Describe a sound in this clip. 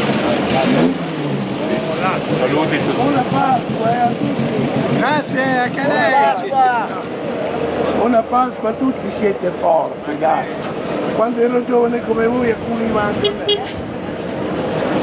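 A man speaks calmly through a loudspeaker.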